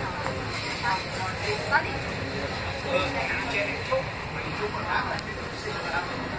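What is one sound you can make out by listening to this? A subway train rumbles and rattles along its tracks.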